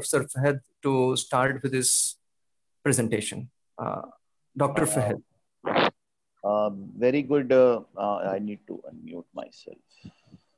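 A man speaks steadily through an online call.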